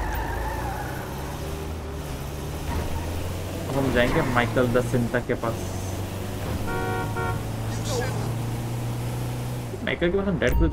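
A van engine hums as it drives.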